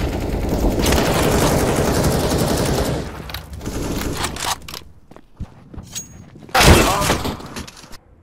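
Gunshots crack loudly.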